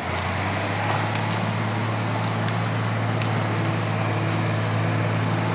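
An airboat engine drones steadily nearby.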